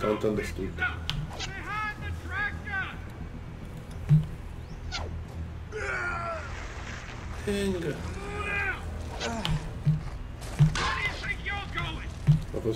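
A man speaks tensely and urgently.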